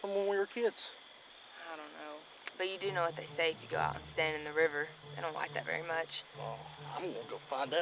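A young man talks calmly, close by.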